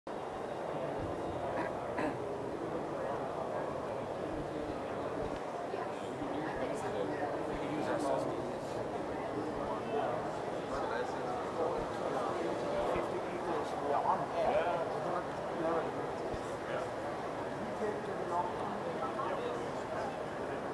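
Many people chatter at a distance in a large echoing hall.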